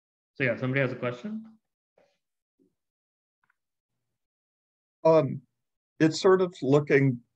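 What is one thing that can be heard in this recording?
A man speaks calmly into a microphone, pausing between phrases.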